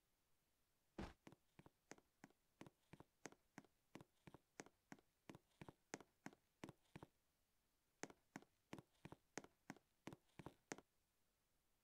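Quick footsteps patter along in an even rhythm.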